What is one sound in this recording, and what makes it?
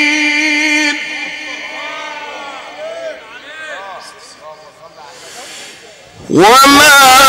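A crowd of men calls out in the distance.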